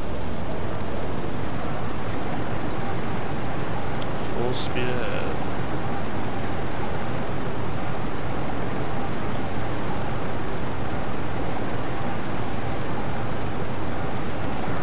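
Waves roll and wash steadily over open sea.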